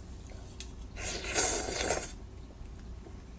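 A young woman slurps noodles.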